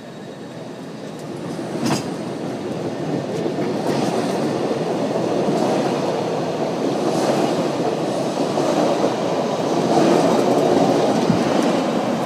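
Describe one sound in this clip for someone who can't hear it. A train rumbles as it pulls away, growing louder.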